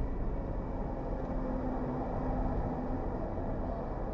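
A truck engine rumbles close by as the truck passes.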